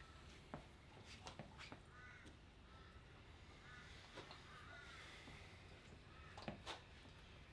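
A metal clip clinks and rattles as a weighted handle is gripped and lifted.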